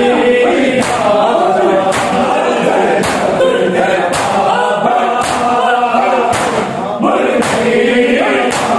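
A crowd of men chant loudly in rhythm.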